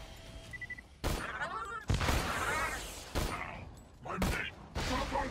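Heavy gunshots fire in bursts.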